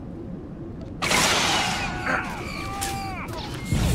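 A burst of weapon blasts and crackling erupts loudly.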